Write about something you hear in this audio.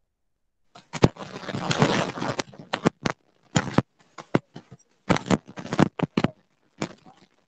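A microphone on an earphone cable rustles and crackles as it is handled.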